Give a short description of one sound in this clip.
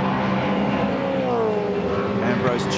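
A racing car engine drops in pitch as the driver shifts down.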